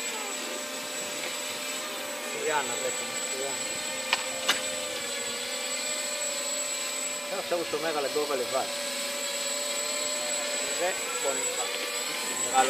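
A small drone hums and whines steadily overhead.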